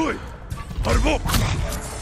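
A sword slashes sharply through the air.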